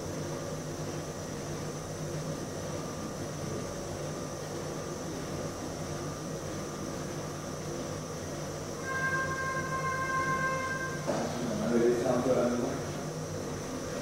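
Electronic game sounds play faintly from a small speaker.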